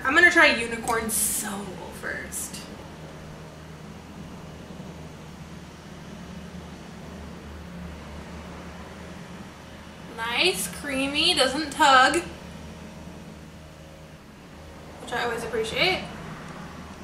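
A young woman talks to the listener close to a microphone, calmly and in short bursts.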